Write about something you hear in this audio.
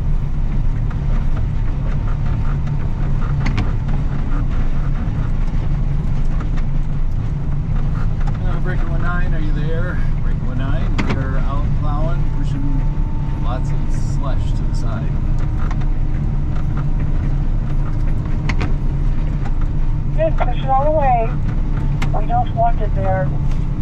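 A heavy diesel engine rumbles steadily up close.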